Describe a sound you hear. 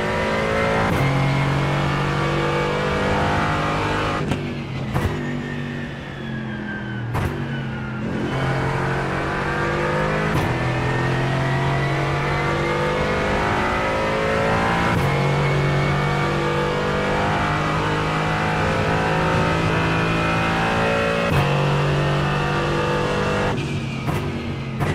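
A gearbox clicks sharply with each gear change.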